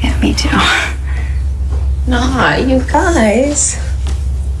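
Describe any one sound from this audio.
A young woman speaks cheerfully and laughs.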